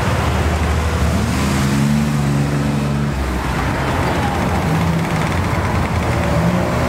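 A Ferrari California V8 accelerates past close by.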